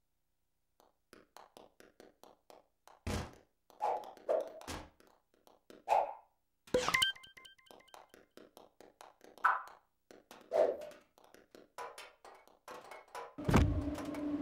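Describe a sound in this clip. Light footsteps patter across a floor.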